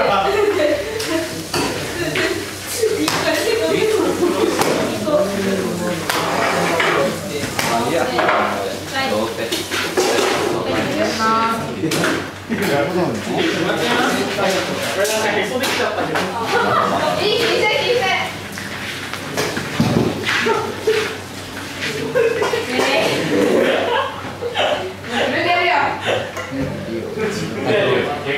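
Several young people chatter close by.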